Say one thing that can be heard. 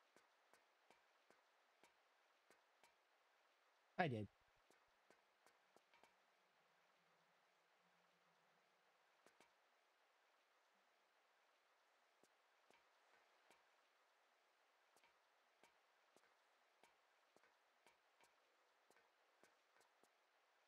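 Footsteps tap on a hard floor at an even pace.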